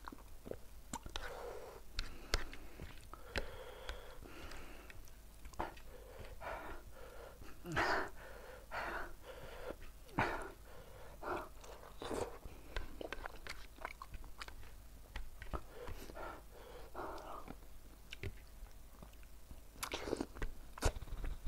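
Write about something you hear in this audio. A young man chews and slurps food loudly, close up.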